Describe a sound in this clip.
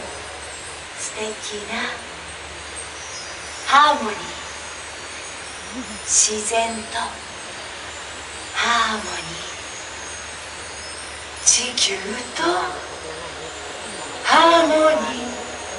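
A woman sings short, gliding phrases through a loudspeaker, with pauses between them.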